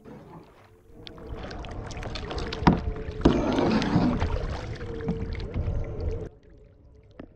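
Wind gusts across open water.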